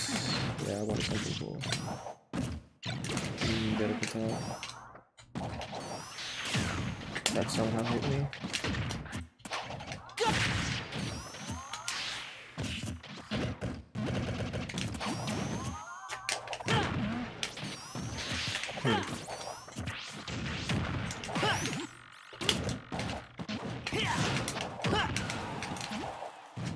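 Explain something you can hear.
Punches and blasts of a fighting game thud and crackle in quick bursts.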